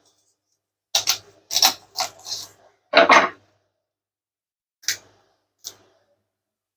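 A heavy knife chops through bone onto a wooden board with sharp thuds.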